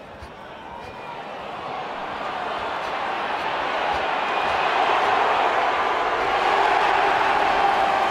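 A large crowd cheers and roars, growing louder.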